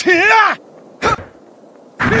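A sword slashes through the air with a sharp whoosh.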